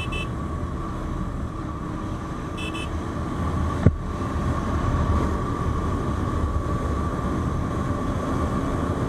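Wind rushes past the rider outdoors.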